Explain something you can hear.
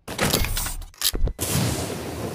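A grenade is tossed with a short whoosh.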